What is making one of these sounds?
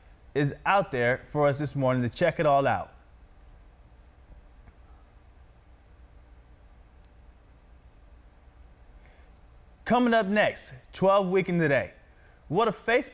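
A young man speaks calmly and close into a microphone, with pauses.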